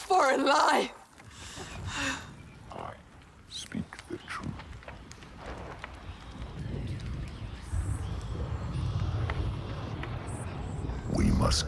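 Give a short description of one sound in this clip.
A fire crackles and roars.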